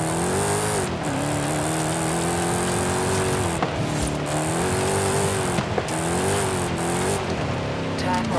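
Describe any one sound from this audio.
Tyres crunch and splash over a wet dirt track.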